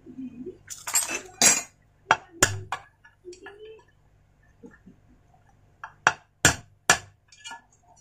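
A hammer taps sharply on metal.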